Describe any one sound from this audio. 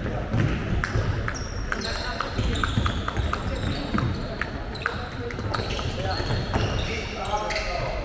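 A ball bounces repeatedly on a hard floor in a large echoing hall.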